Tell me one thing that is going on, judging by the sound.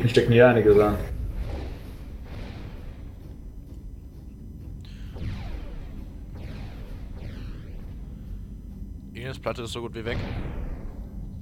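Laser weapons fire in repeated zapping bursts.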